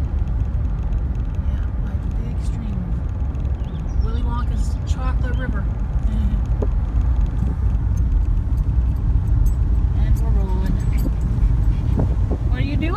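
A car engine hums and tyres roll steadily along a road, heard from inside the car.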